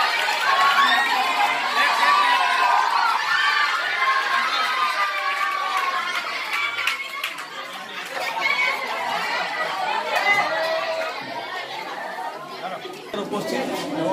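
Several people clap their hands in rhythm.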